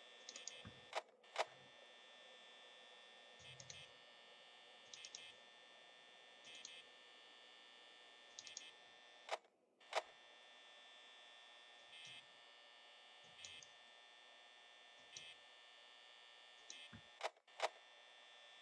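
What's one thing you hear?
A switch clicks sharply, several times.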